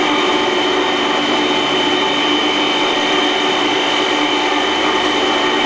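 A grinding machine's motor hums with a steady, loud whine.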